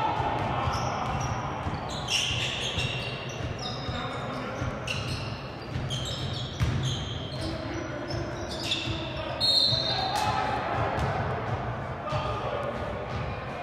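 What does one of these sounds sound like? Spectators murmur and call out in a large echoing gym.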